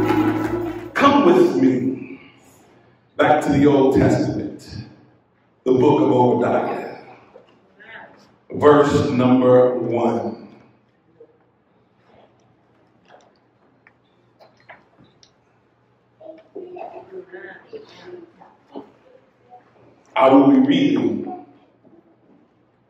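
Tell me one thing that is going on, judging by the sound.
A man reads aloud slowly and with emphasis in a large echoing room.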